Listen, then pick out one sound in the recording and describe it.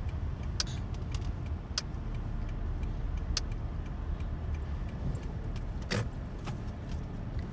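Raindrops tap now and then on a windshield.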